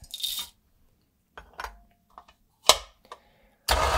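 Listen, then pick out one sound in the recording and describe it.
A plastic hopper clicks into place on a grinder.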